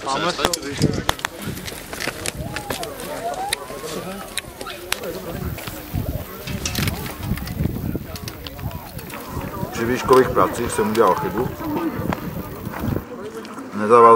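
Several people chat outdoors in the background.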